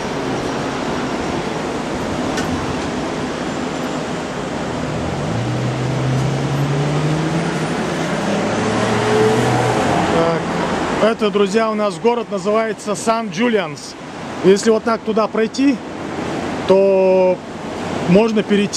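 Waves wash against a rocky shore in the distance.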